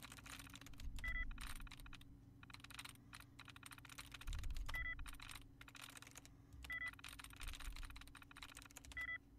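A computer terminal beeps in short high tones.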